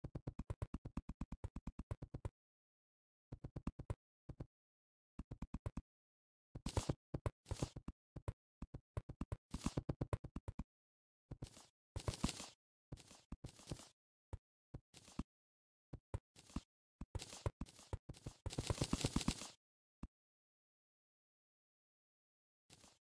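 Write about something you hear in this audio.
Small game sound effects tap and pop in rapid bursts.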